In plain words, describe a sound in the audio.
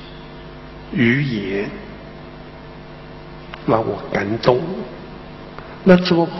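An elderly man speaks slowly and expressively into a microphone, in a large echoing hall.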